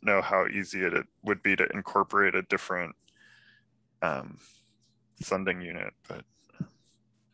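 A man speaks calmly through a headset microphone over an online call.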